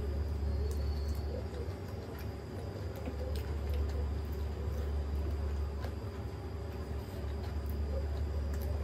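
A girl chews food noisily close to a microphone.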